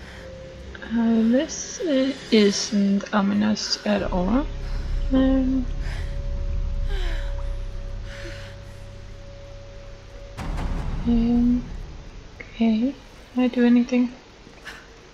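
A young woman gasps and grunts with strain, close by.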